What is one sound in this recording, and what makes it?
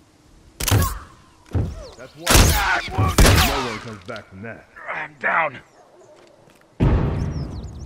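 Loud blasts boom close by.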